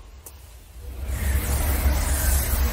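A magical shimmering hum swells up and rings on.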